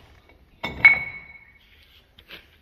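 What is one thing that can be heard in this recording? A heavy metal part clanks and rings briefly.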